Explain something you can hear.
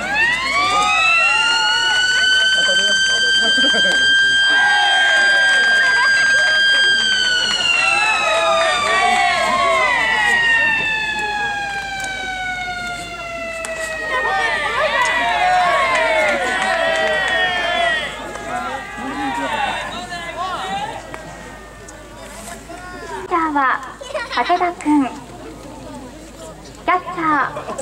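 A large crowd chatters and cheers in an open-air stadium.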